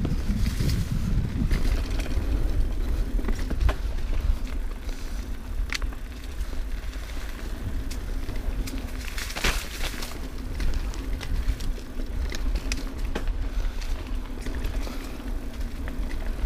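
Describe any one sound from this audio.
A bicycle rattles and clanks over bumps.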